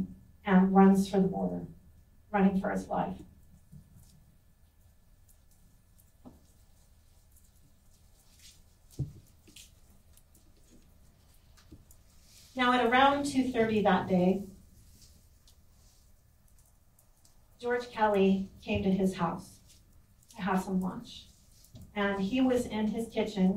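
A woman speaks calmly into a microphone, in short bursts with pauses.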